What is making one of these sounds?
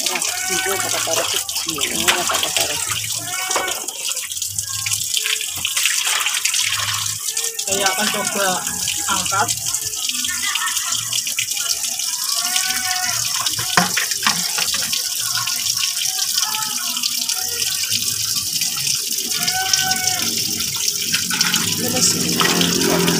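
Water pours steadily from a hose into a shallow pool.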